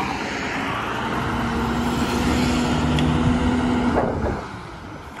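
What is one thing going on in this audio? A van drives past on the road.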